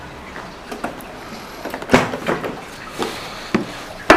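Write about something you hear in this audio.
A scooter seat latch clicks open.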